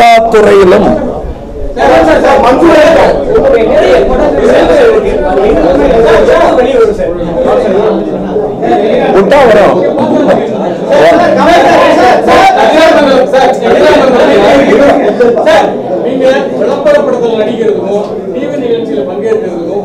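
A middle-aged man speaks with animation into microphones close by.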